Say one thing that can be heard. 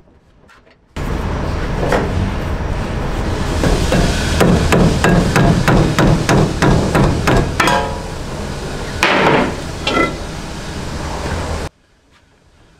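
A hammer strikes metal in rapid, loud blows close by.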